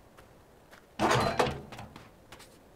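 A metal chest lid swings open with a clunk.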